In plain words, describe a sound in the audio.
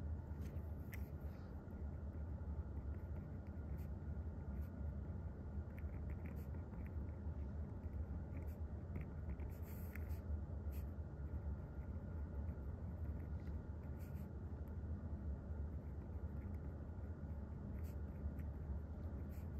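A pen scratches and taps softly on paper.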